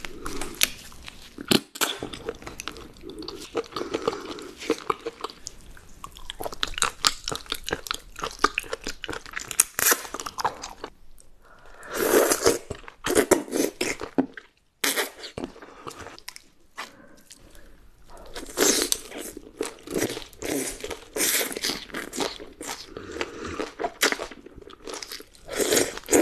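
A young woman chews and slurps food loudly, close to a microphone.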